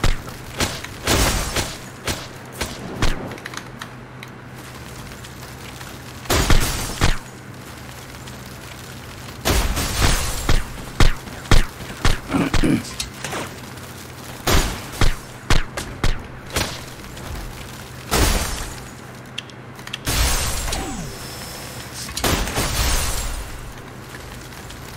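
Loud blasts boom and rumble.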